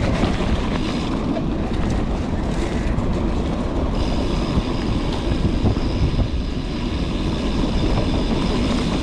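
Bicycle tyres rumble and crunch over a dirt trail.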